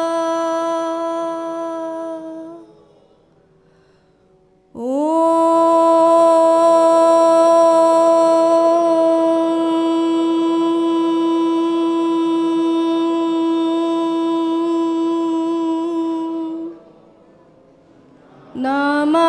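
A young woman sings long, held notes into a microphone.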